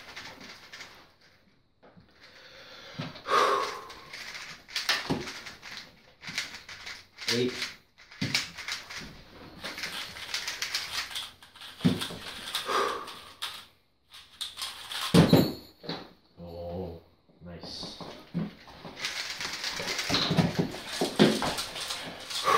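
Plastic puzzle cubes click and rattle as they are turned quickly.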